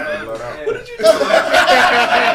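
Several men laugh together.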